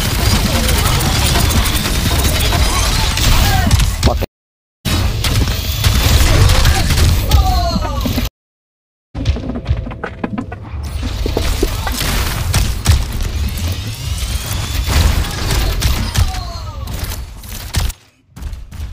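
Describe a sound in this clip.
Game weapons fire in rapid bursts with loud explosions.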